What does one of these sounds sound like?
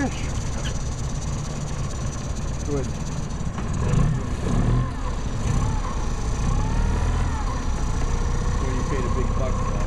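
Water splashes and laps as a large fish moves at the surface.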